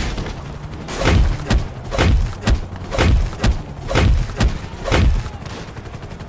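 Heavy punches thud repeatedly on a body.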